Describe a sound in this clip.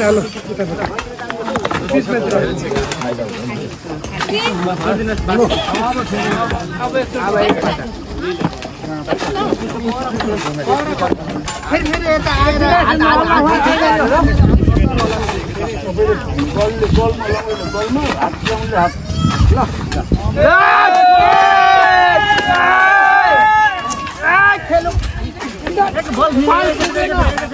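A crowd of men talk and call out to each other outdoors.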